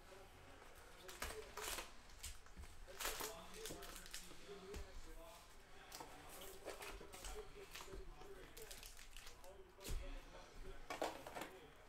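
Cardboard scrapes as a box is opened and emptied.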